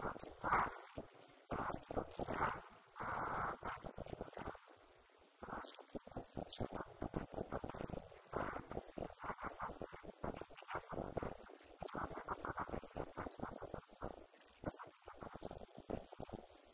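A woman speaks with animation through a microphone and loudspeaker in an echoing hall.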